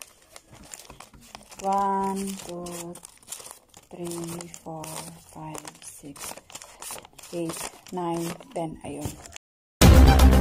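Paper banknotes rustle in a woman's hands.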